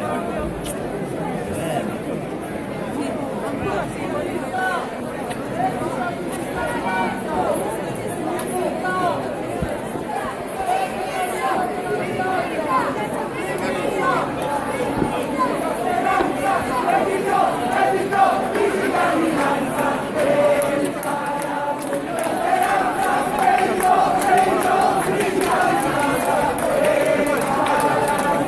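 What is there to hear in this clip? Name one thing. A large outdoor crowd of men and women chatters and calls out all around.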